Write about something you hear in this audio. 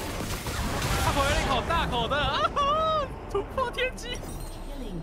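Video game spell effects whoosh and clash during a fight.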